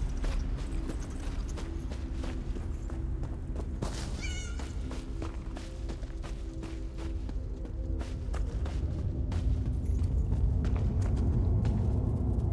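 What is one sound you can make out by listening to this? Footsteps crunch through undergrowth.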